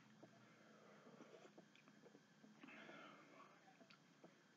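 A man sips a drink from a can.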